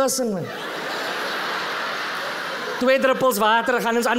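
An audience laughs loudly in a large hall.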